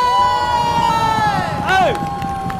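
A man shouts loudly with excitement.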